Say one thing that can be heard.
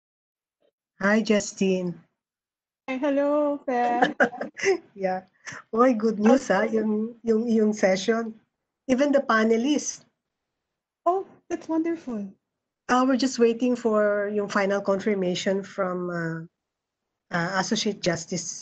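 A woman speaks calmly over an online call, reading out.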